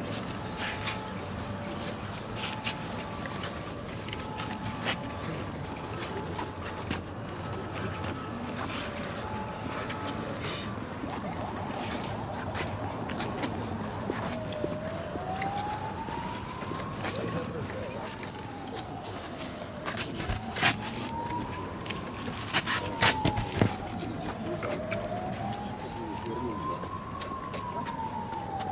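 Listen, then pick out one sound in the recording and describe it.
A crowd of men and women murmurs and chatters outdoors.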